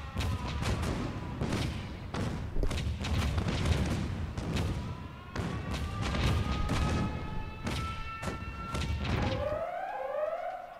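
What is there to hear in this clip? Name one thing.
Explosions boom and crackle in rapid succession.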